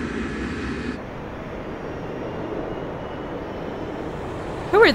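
A jet airliner's engines hum as it taxis.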